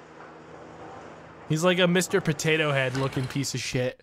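A metal lift gate rattles and slides open.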